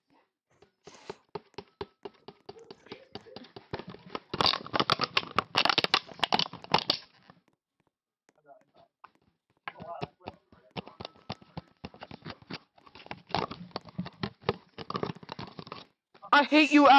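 Quick, rapid clicking of blocks being mined in a game.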